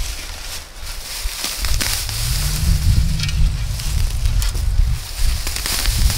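Hands rustle through leafy plants.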